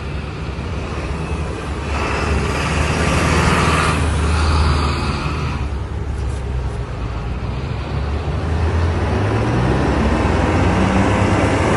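A bus engine rumbles as a bus drives past close by.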